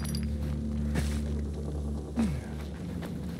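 Hands grab and clatter on a metal ladder.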